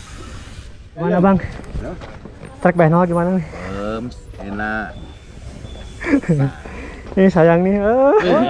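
A man talks calmly, close by, outdoors.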